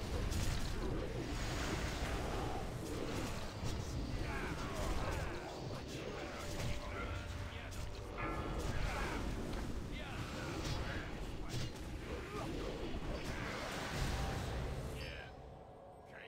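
Magic spells crackle and burst in a loud fight.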